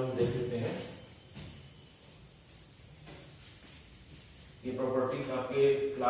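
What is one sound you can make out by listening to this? A board eraser rubs across a whiteboard.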